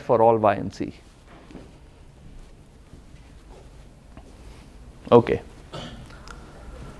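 A man speaks in short bursts in a large room, with pauses between.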